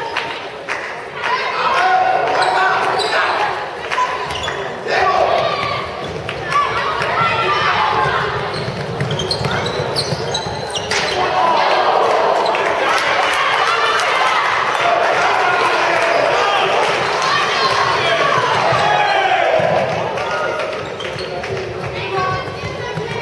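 Young women players shout and call out to each other in an echoing hall.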